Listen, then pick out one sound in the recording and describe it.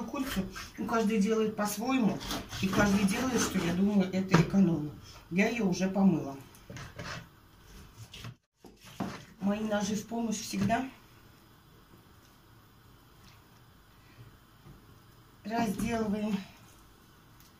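A middle-aged woman talks calmly near the microphone.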